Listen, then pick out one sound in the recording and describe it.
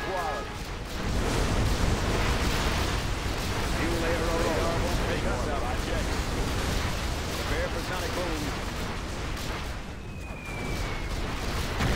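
A beam weapon hums and crackles as it sweeps the ground.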